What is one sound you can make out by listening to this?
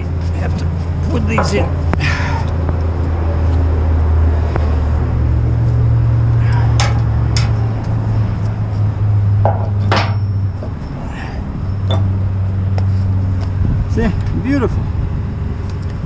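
Metal parts clank as a hand handles them.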